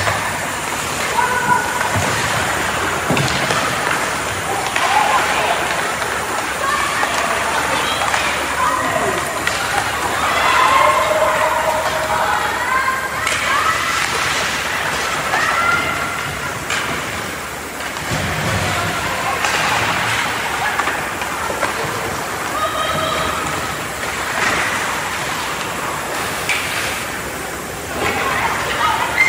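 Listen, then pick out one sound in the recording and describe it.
Skate blades scrape and hiss on ice in a large echoing rink.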